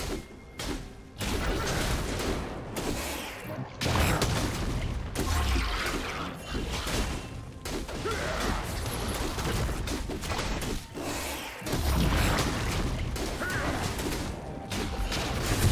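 Blows and hits thud again and again.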